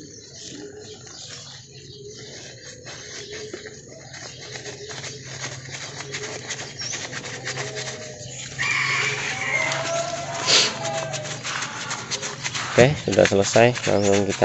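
Scissors snip a plant stem.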